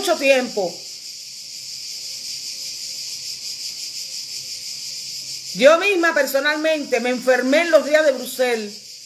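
An older woman speaks expressively and close to a microphone.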